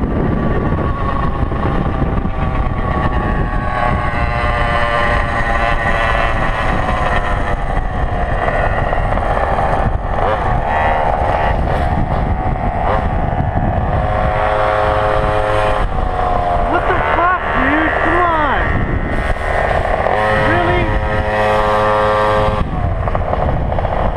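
Wind buffets the microphone.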